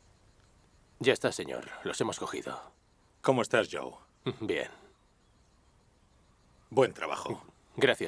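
A man speaks in a low, earnest voice close by.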